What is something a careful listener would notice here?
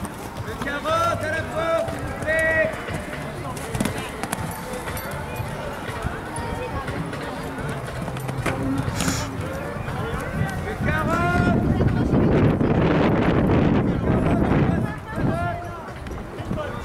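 Horse hooves thud on soft sand.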